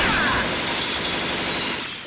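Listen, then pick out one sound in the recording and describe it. Glass shatters and crashes.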